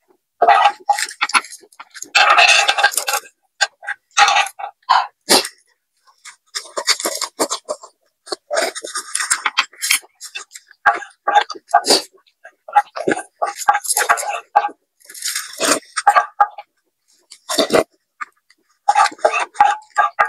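A spoon scrapes against a pan.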